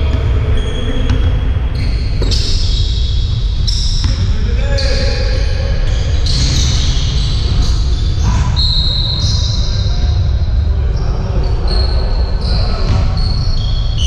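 Footsteps of players thud across the court.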